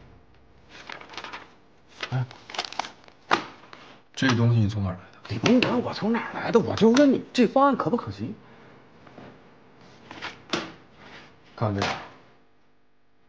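A man speaks calmly and questioningly nearby.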